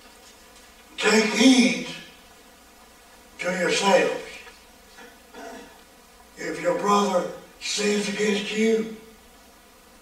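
An elderly man speaks with emphasis through a microphone, in bursts separated by pauses.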